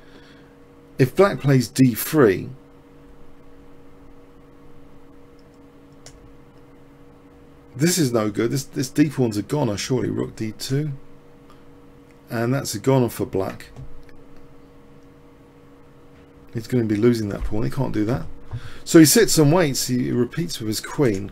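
A man talks calmly into a microphone, in bursts with pauses.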